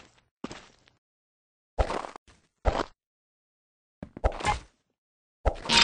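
Snowballs are thrown with short soft whooshes.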